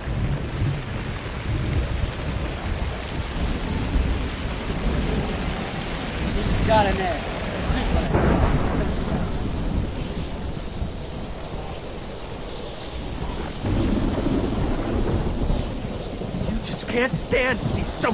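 A middle-aged man talks calmly close to a microphone.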